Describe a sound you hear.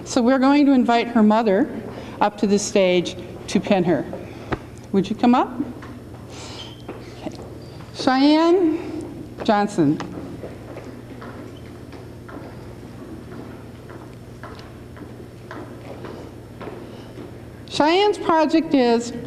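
A middle-aged woman speaks into a microphone over a loudspeaker in an echoing hall, pausing between phrases.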